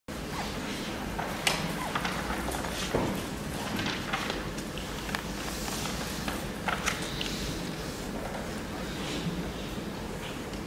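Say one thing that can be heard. A cello plays.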